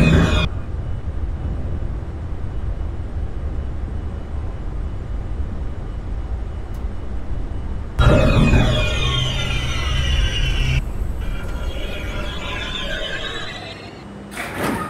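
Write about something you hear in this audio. A subway train rumbles as it pulls out of a station and fades.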